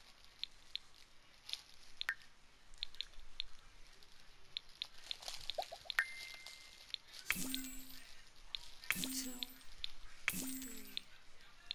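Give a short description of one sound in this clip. Soft game menu clicks sound as options are chosen.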